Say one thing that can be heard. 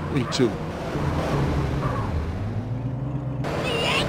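Car tyres screech as the car skids sideways.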